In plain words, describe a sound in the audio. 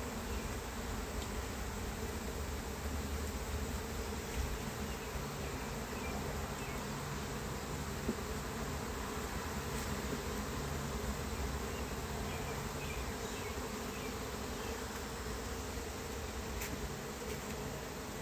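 A metal hive tool scrapes and clicks against wooden frames.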